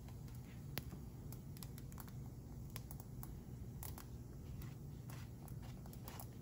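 Flatbread sizzles and crackles softly in a hot pan.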